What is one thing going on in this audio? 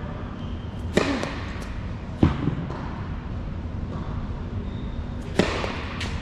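A tennis racket strikes a ball with sharp pops that echo in a large hall.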